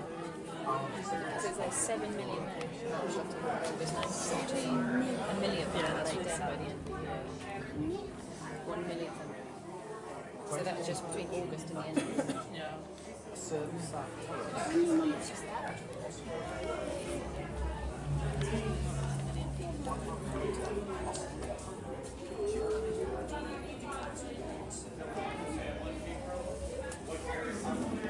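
Adults and children talk quietly nearby, with an indoor echo.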